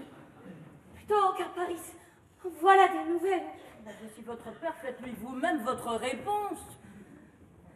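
An older woman sings in a strong voice.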